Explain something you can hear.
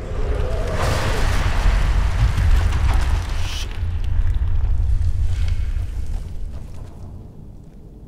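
A deep, heavy rumble roars, then slowly fades.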